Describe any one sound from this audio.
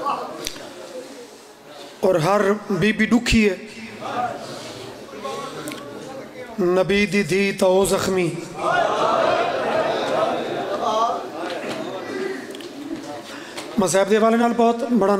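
A man speaks forcefully into a microphone, in loud, chanting bursts through a loudspeaker.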